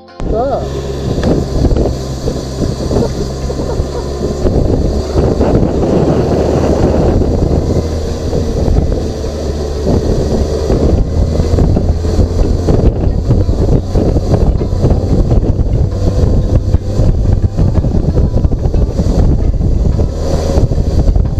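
A motorcycle engine hums steadily while riding along a winding road.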